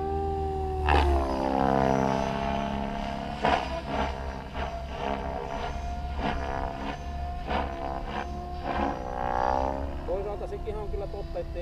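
A small model plane engine whines overhead, rising and falling in pitch as it passes.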